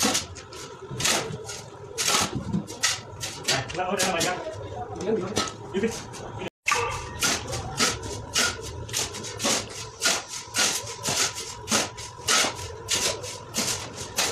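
Shovels scrape and scoop through a heap of sand and cement in quick rhythm.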